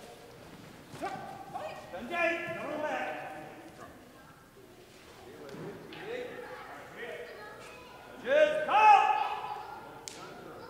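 Children shout sharply and loudly in an echoing hall.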